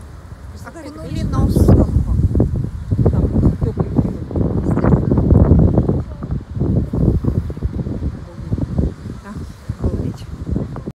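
Wind blusters loudly against the microphone outdoors.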